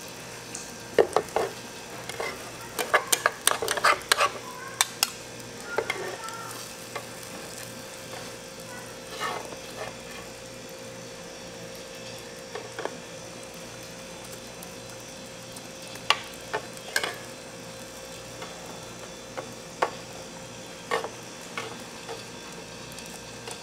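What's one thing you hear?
Plastic spatulas scrape and tap against a metal pan.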